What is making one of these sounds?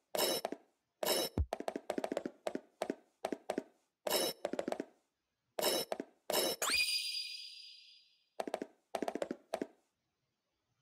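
Footsteps tap on a hard floor in short bursts.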